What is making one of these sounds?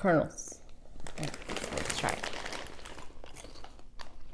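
A plastic snack bag crinkles.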